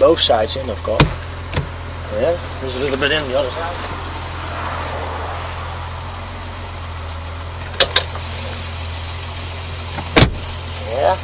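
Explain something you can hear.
Sharp knocks thump on a car's soft top.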